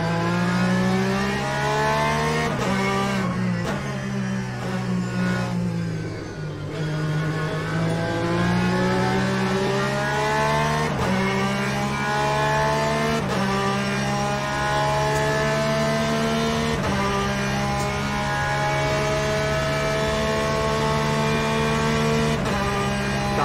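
A racing car engine roars, its pitch climbing steadily and dropping sharply with each gear change.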